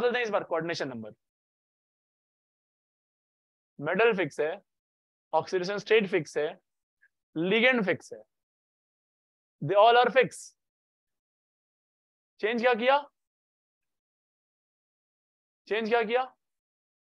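A young man speaks calmly through a microphone in short phrases with pauses.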